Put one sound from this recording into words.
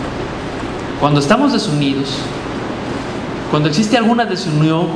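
A man speaks with animation into a microphone in a large echoing hall.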